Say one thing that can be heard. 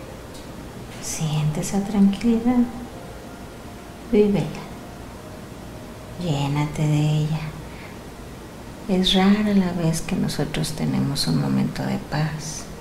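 A man speaks slowly and weakly, close by, in short bursts with pauses.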